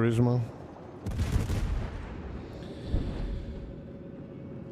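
Heavy naval guns fire with deep booms.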